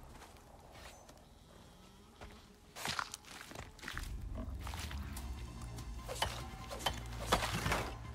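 A knife slices wet flesh.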